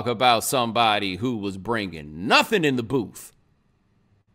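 A man speaks expressively and close into a microphone.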